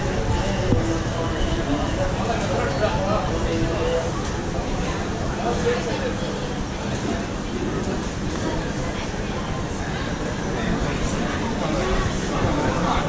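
A crowd of men and women chatters throughout, nearby and in the distance.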